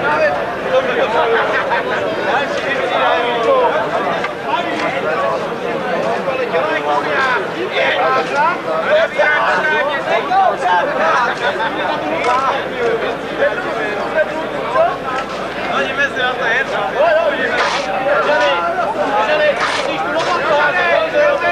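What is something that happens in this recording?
Shovels scrape and toss soil.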